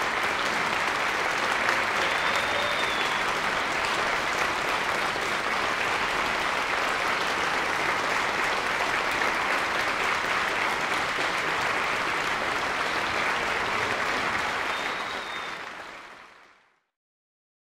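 An audience applauds loudly and steadily in a large hall, then fades out.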